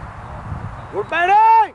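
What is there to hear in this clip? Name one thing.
A man shouts loudly from a distance.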